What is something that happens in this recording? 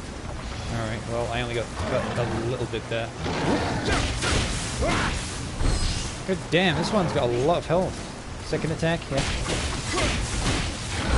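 A demon growls and roars.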